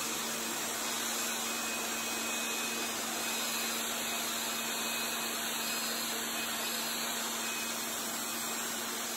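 A pressure washer sprays water onto concrete with a steady hiss.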